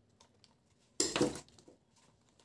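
Stiff paper crinkles and rustles in hands.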